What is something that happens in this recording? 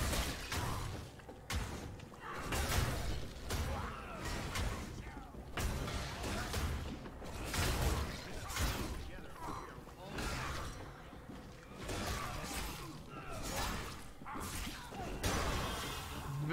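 Blows and slashes thud and crack in a fast fight.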